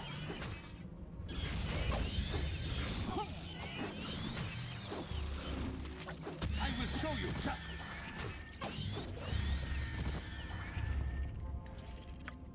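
Combat sound effects clash and chime.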